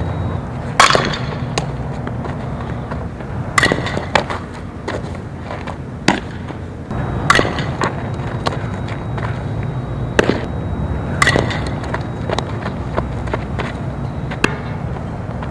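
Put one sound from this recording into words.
A softball smacks into a leather glove again and again.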